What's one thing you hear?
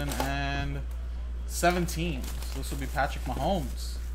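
Plastic wrapping crinkles as a box is handled.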